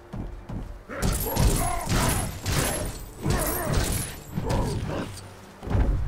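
Wooden crates smash and clatter in a quick burst of crashes.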